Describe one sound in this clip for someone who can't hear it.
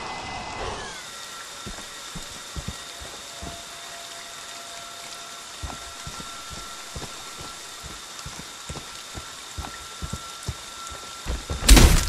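Heavy footsteps thud on soft ground.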